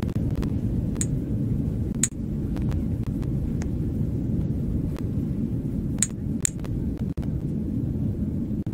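An airplane cabin hums with a steady low engine drone.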